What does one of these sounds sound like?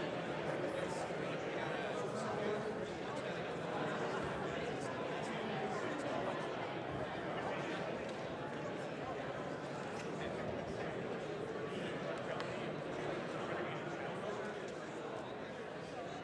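Many men and women chatter and murmur in a large echoing hall.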